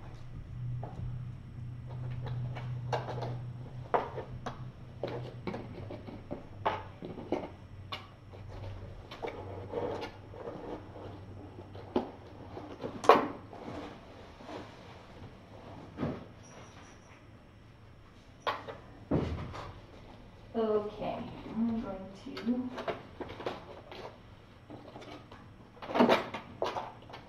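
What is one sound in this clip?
Kittens scamper and tumble about, their paws thumping and scratching on a soft floor.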